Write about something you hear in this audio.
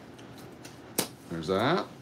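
Scissors snip through a paper band with a sharp click.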